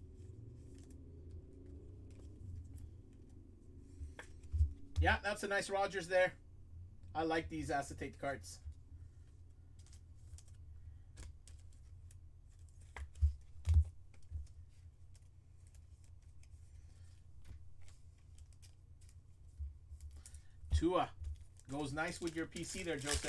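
Plastic card sleeves rustle and crinkle softly close by.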